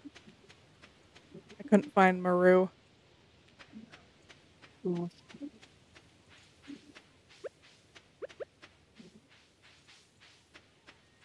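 Footsteps tap quickly and evenly on a dirt path.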